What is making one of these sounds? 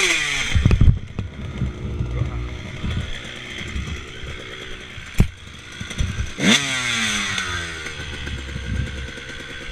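A dirt bike engine idles low and then revs up again.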